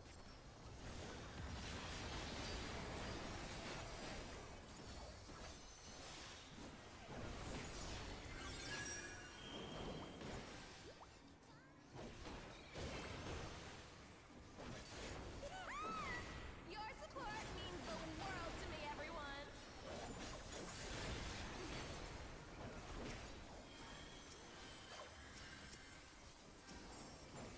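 Battle music and spell effects play loudly throughout.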